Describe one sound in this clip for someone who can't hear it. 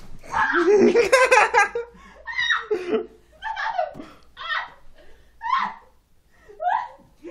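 A young person laughs and squeals loudly nearby.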